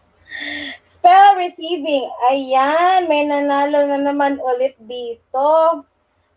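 A woman sings through a microphone.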